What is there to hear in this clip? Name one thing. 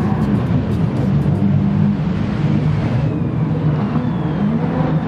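A rally car engine roars loudly at high revs throughout.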